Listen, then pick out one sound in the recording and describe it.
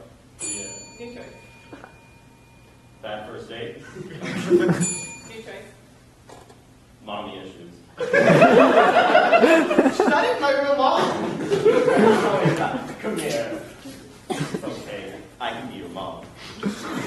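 A young man speaks loudly on a stage in a large echoing hall.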